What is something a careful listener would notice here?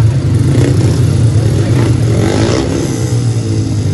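Motorcycles roar away together.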